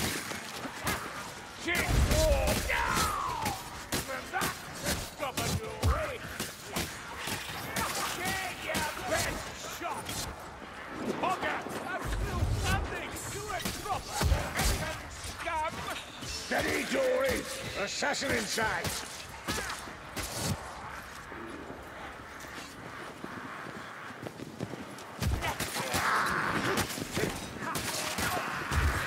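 Blades slash and thud into flesh in quick bursts.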